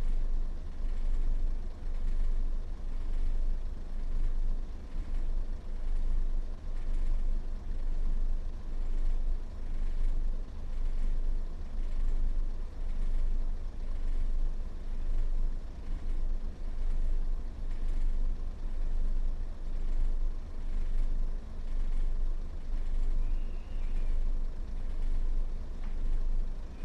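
A standing train's motor hums steadily with a low rumble.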